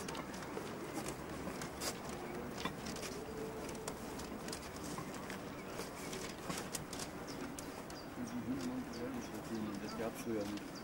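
A steam locomotive chugs slowly along the track nearby.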